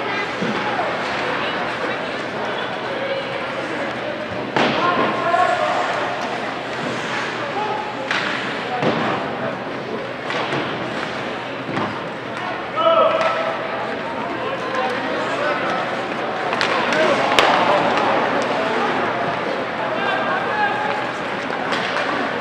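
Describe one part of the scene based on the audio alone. Ice hockey skates scrape and carve across the ice in an echoing rink.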